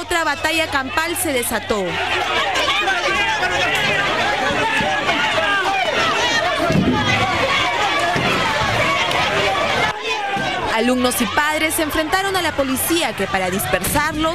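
A crowd of people shouts and yells outdoors.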